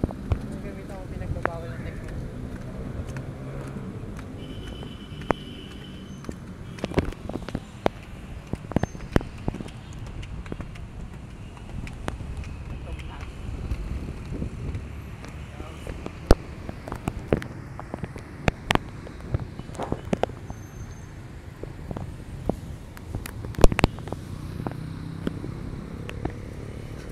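Traffic rumbles steadily below, outdoors.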